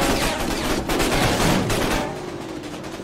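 A vehicle engine roars loudly as it drives.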